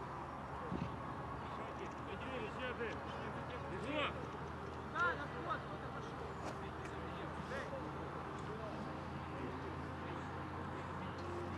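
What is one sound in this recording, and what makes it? Men shout to each other across an open outdoor field, heard from a distance.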